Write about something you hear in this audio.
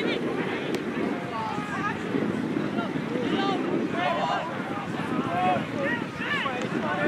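Young players and spectators shout and call out across an open field.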